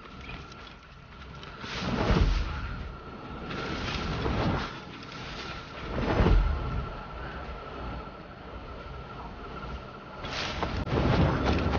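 Footsteps run through rustling leaves.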